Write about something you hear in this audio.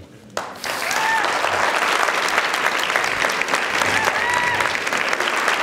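An audience cheers and whistles.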